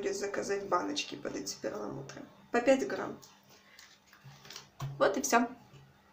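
Plastic packets crinkle as hands handle them.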